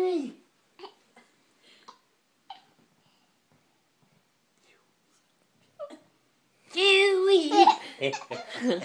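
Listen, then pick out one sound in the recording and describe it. A toddler squeals and babbles close by.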